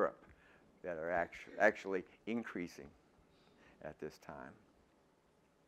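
An elderly man lectures calmly through a microphone in a large echoing hall.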